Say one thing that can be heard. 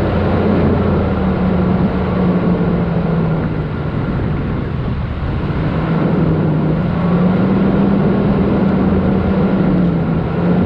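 Tyres rumble and hiss over soft sand.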